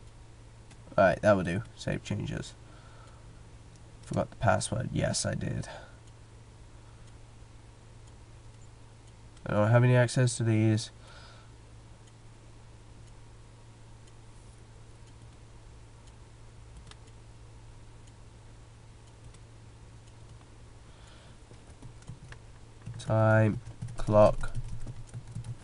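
A young man speaks in short bursts into a headset microphone, close and casual.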